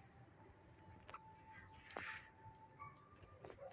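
A dog shifts and rustles on soft bedding.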